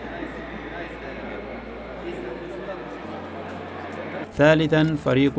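Men talk quietly among a murmuring crowd indoors.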